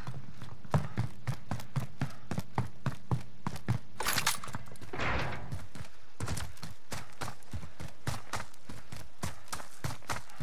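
Quick footsteps thud steadily on hard ground.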